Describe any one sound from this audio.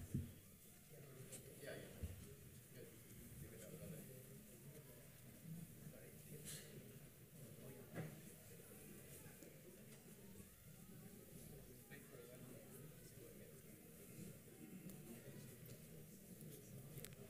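A man speaks calmly through a microphone and loudspeakers in an echoing hall.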